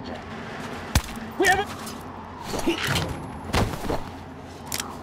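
Heavy blows thud in a close scuffle.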